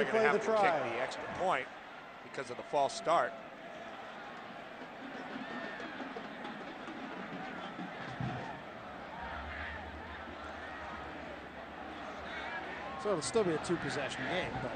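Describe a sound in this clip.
A large crowd cheers and murmurs steadily in a stadium.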